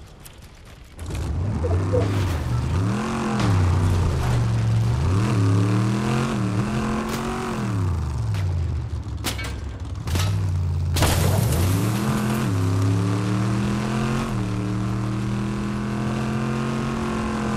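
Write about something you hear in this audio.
A vehicle engine roars and revs up and down as it drives.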